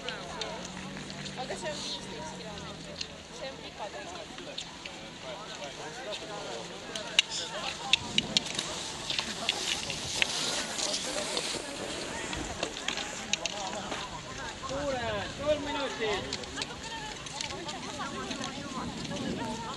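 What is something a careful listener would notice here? A crowd of men and women chatter and call out in the distance outdoors.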